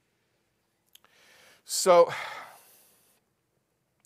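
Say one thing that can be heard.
A middle-aged man speaks briefly and loudly into a microphone.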